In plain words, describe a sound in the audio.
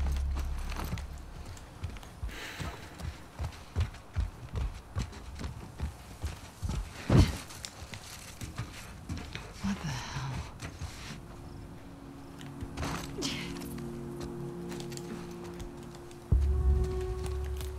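Footsteps rustle quickly through grass and leaves.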